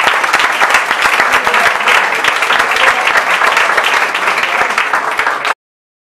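An audience claps.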